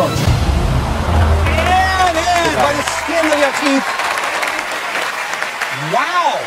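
A studio audience cheers and applauds.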